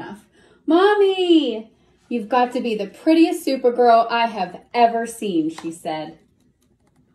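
A woman reads aloud expressively, close by.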